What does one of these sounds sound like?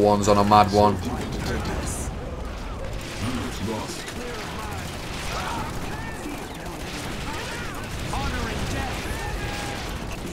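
Gunfire and blasts rattle on continuously.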